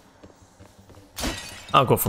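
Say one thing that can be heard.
A sword swings with a whoosh.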